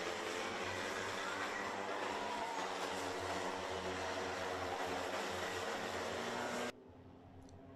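Several go-kart engines buzz loudly as karts race past.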